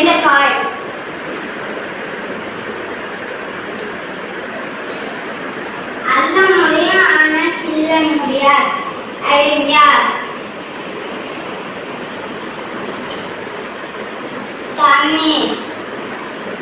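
A young boy speaks clearly and with animation, close by.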